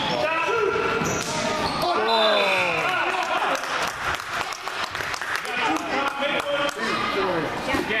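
Adult spectators cheer and call out from the sidelines.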